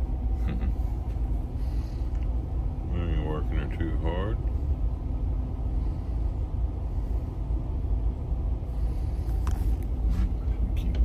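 A boat's engine rumbles low and steady.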